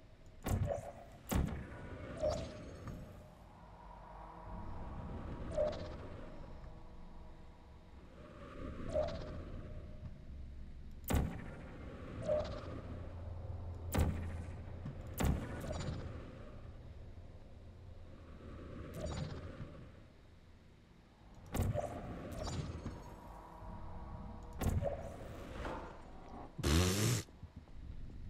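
A portal gun fires with sharp zapping bursts.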